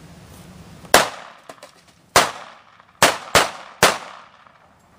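Gunshots ring out sharply outdoors, several in quick succession.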